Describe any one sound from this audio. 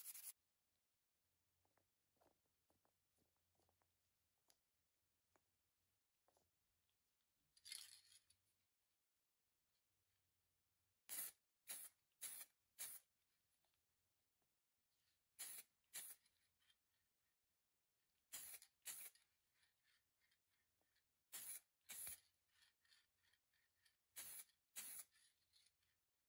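A small metal tool clicks and taps sharply as it is handled.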